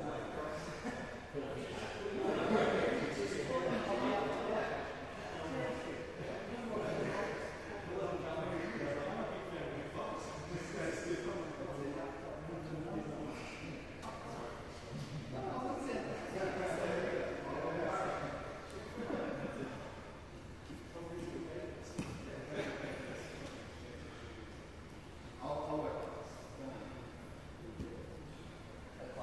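Adult men talk casually at a distance in a large echoing hall.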